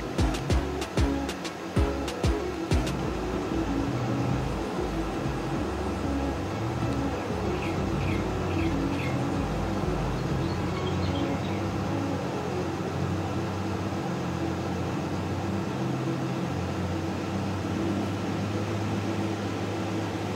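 A tractor engine drones steadily with a low hum.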